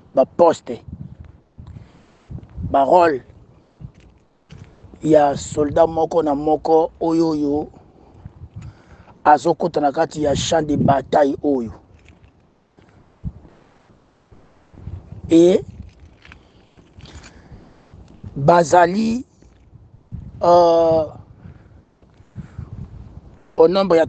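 A man speaks calmly and clearly nearby, pausing between phrases.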